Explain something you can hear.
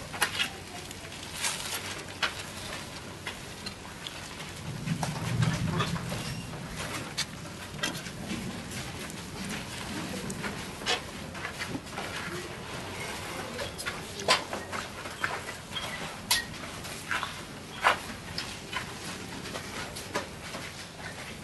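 Footsteps scuff on gritty ground.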